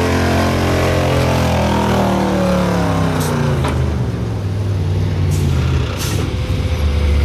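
A pickup truck's engine roars loudly as it strains to pull a heavy sled, its pitch slowly falling.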